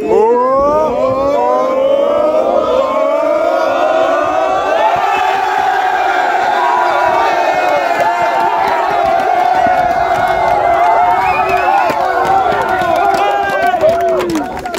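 A group of young men sings a chant together loudly.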